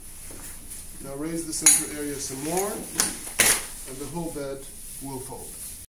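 A man speaks calmly nearby.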